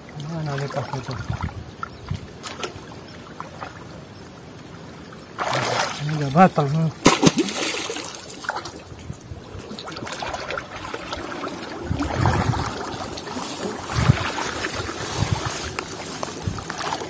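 Water splashes nearby.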